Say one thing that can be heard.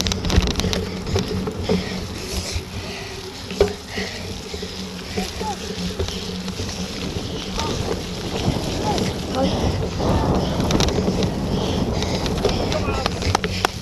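Bicycle tyres roll and bump over muddy grass.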